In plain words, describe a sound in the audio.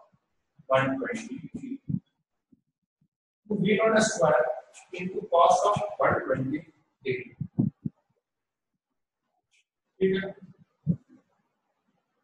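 A man speaks calmly and clearly, close to a microphone, with pauses.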